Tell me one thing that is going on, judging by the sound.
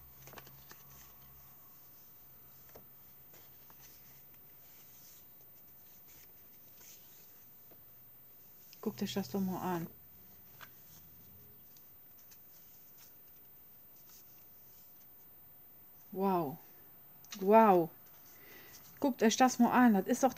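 Paper cards rustle and slide against each other as hands shuffle them.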